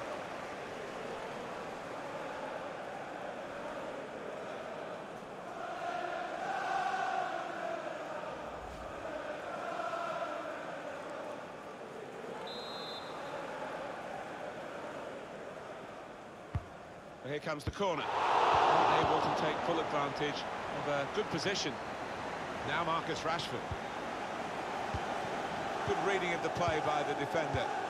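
A large stadium crowd roars and chants steadily.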